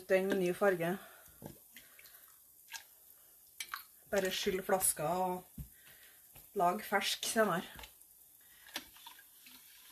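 Liquid sloshes as it is stirred in a pot.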